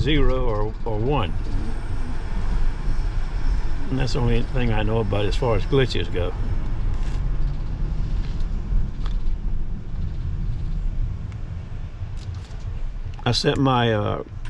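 An elderly man speaks calmly from close by.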